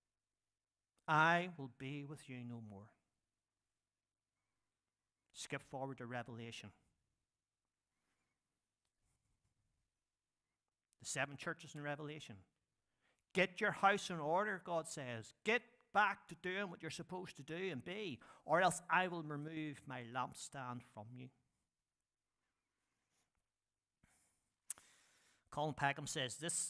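A middle-aged man speaks with emphasis into a microphone, with pauses.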